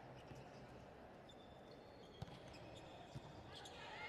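A volleyball bounces on the floor.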